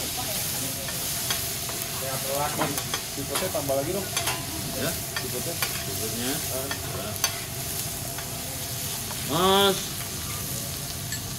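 Metal spatulas clink and scrape against a griddle.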